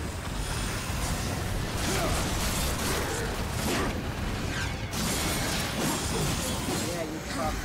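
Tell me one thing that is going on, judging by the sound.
Blades clash and slash in a loud fight.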